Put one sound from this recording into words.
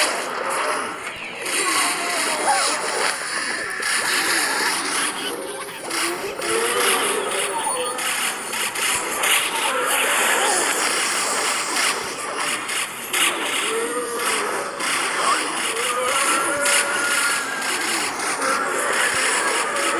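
Small cartoon shots pop rapidly and bursts crackle.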